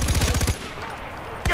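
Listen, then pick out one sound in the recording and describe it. A machine gun fires a rapid burst.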